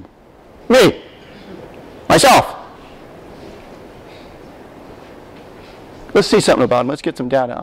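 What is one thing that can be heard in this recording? A man speaks through a microphone in a large echoing hall, in short phrases with pauses.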